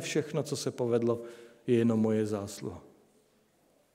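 A middle-aged man speaks into a microphone in a measured, preaching tone.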